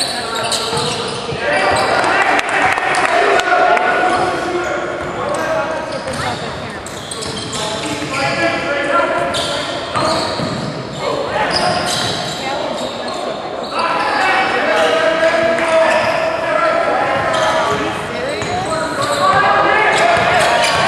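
Spectators and players shout and call out in an echoing gym.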